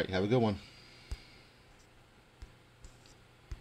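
A hand rubs and bumps against the microphone.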